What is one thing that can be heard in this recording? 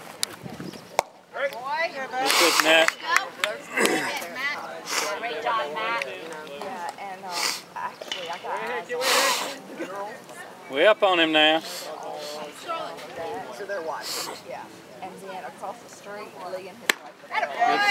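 A baseball smacks into a catcher's mitt at a distance.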